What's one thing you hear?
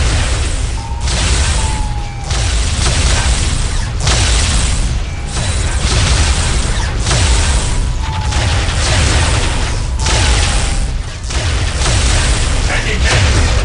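Laser beams zap and hum in bursts.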